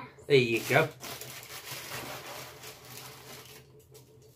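Dry food rattles as it pours into a plastic container.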